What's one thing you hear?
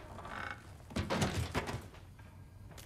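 A heavy body thuds as it is dropped.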